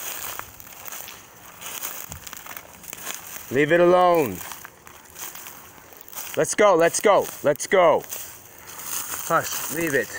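Dry leaves crunch underfoot.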